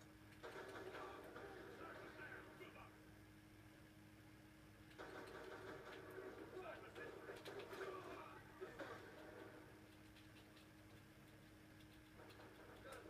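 A television plays a programme nearby.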